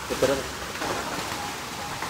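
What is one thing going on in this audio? A dog splashes into water.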